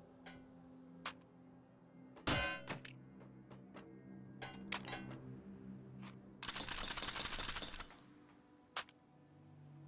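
Metal parts of a gun click and clack as it is handled.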